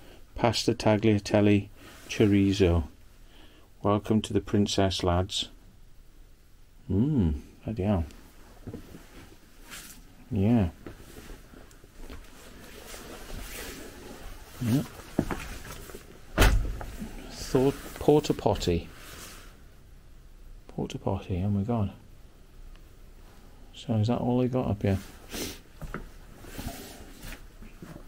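A man speaks close by, calmly and in short bursts.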